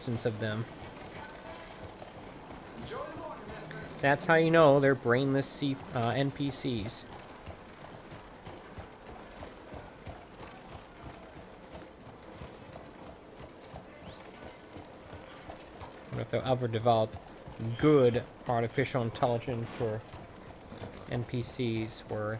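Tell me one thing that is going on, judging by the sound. A horse's hooves clop steadily on a dirt street.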